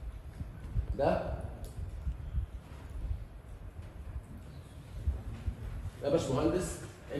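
A man speaks in short bursts nearby.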